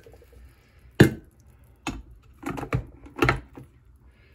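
A glass carafe clinks into place.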